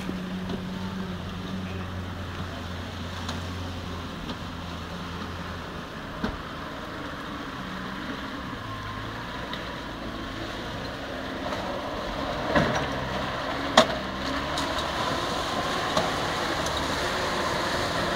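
An off-road vehicle's engine rumbles and revs as it drives over rough ground.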